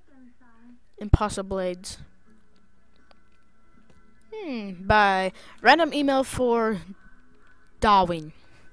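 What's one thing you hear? A young girl talks with animation into a headset microphone, close up.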